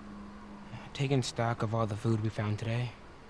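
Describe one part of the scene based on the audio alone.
A teenage boy speaks calmly.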